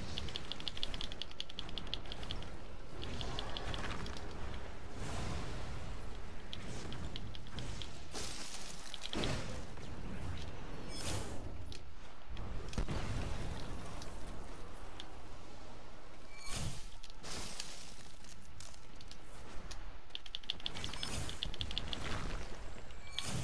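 Magical blasts crackle and boom in bursts.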